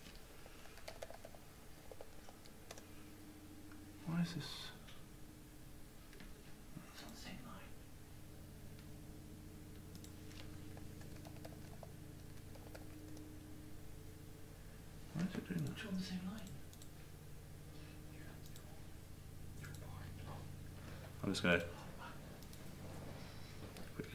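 Computer keys click as a keyboard is typed on.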